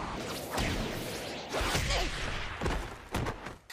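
A boy thuds down onto the ground.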